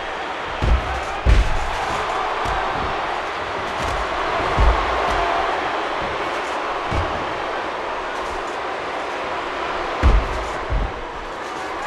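Heavy thuds of bodies slamming onto a ring mat sound now and then.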